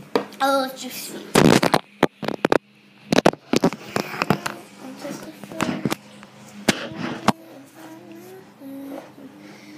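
A phone rubs and bumps against a boy's shirt.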